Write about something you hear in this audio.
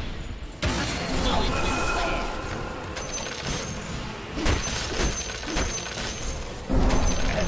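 Fire spells whoosh and crackle in a fast fight.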